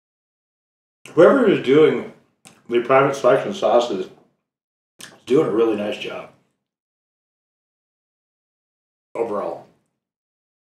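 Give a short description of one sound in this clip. A man talks calmly, close by, in short bursts.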